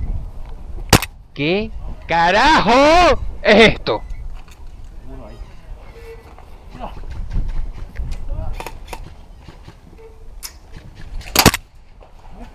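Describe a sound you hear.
A pistol fires sharp single shots.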